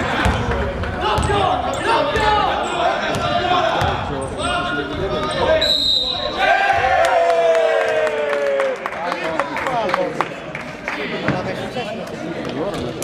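Young male players shout and call out in a large echoing gym.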